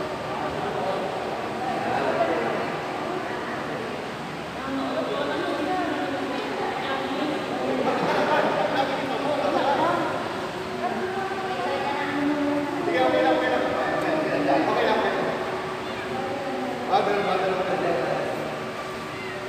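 Several men argue loudly, their voices overlapping and echoing in a large hall.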